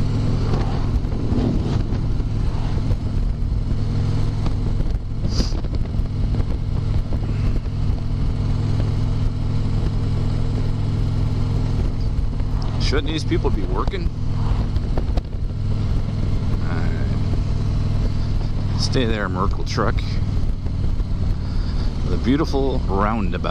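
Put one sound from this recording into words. A motorcycle engine rumbles steadily at highway speed.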